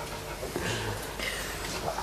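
A dog pants.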